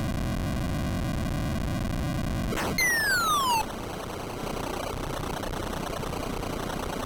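Chiptune video game music plays steadily.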